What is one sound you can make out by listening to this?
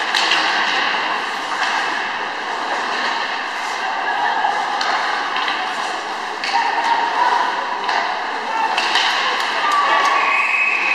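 A crowd murmurs in a large echoing rink.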